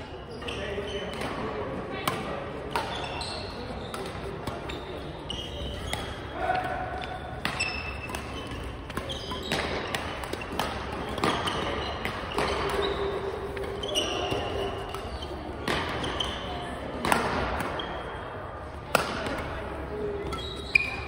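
The sound echoes around a large hall.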